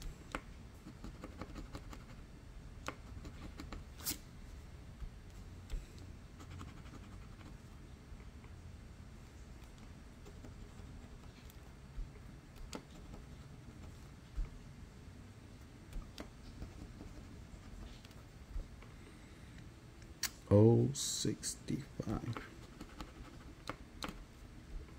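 A coin scratches and scrapes across a card.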